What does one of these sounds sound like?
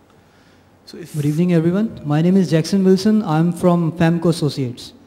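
A man speaks into a microphone in a large hall, pausing often.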